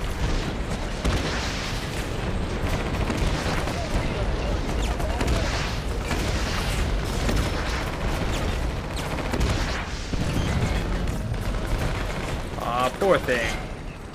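Explosions boom and crackle one after another.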